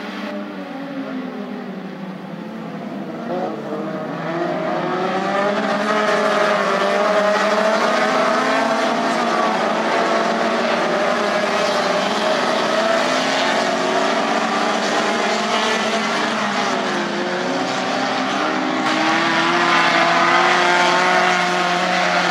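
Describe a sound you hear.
Several small race car engines roar and rev close by.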